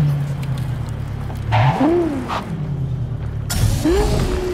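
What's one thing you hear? A car engine hums and rumbles at idle.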